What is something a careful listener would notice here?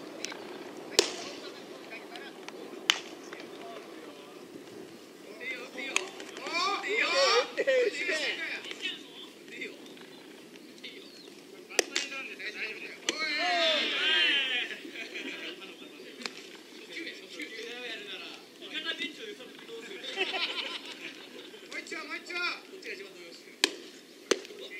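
A baseball smacks sharply into a leather glove.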